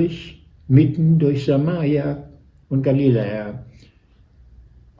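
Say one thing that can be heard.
An elderly man reads aloud calmly and slowly, close to a microphone.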